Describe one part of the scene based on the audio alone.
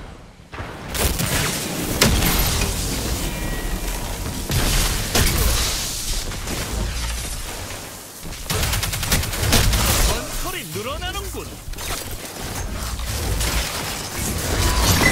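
Electric crackling bursts ring out during fighting.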